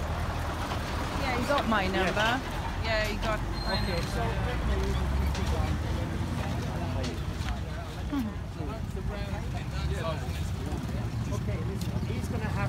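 Men talk nearby in a small outdoor crowd.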